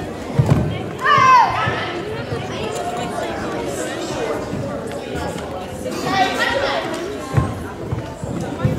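A woman shouts commands in a large echoing hall.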